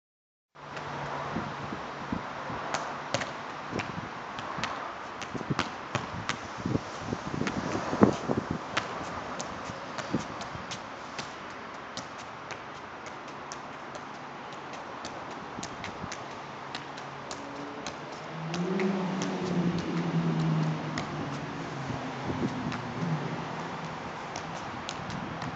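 A ball is kicked and thuds against a wall again and again.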